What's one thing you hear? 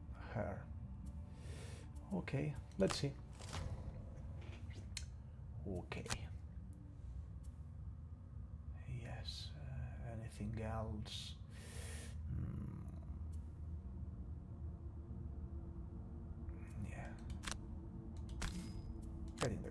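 Short game menu clicks and chimes sound now and then.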